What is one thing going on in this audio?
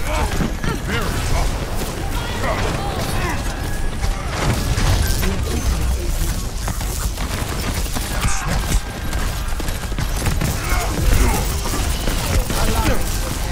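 Electric zaps crackle and buzz from a game weapon.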